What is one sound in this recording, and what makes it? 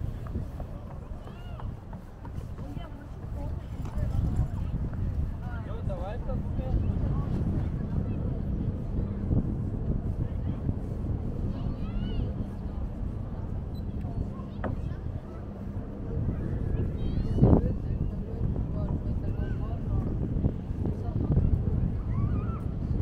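Wind blows steadily outdoors, rumbling across the microphone.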